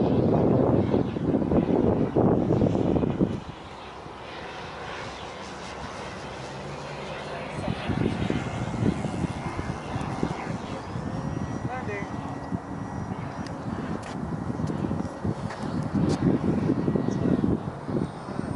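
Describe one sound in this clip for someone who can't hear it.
A radio-controlled model jet whines as it flies overhead.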